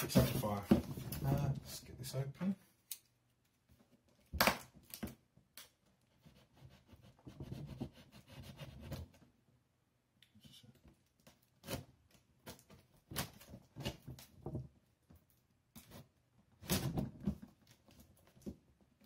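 Hands rustle and tap on a cardboard box.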